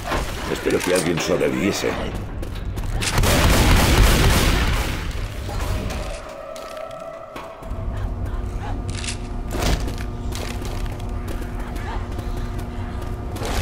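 Footsteps patter quickly as figures run along a walkway.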